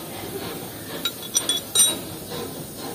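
Metal tool parts clink and tap sharply close by.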